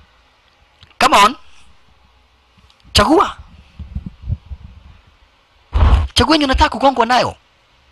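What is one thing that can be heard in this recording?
Another young man answers in a low, firm voice.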